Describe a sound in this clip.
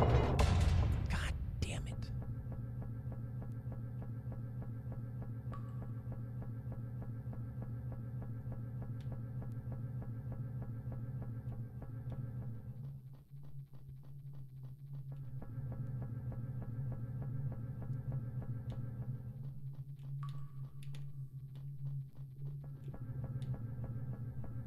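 Dark, droning game music plays with a steady pulsing beat.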